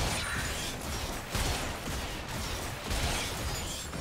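Game weapons strike with sharp hits.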